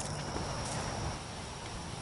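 A rubber boot splashes in shallow water.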